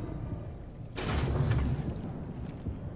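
Heavy metal doors slide open with a whoosh.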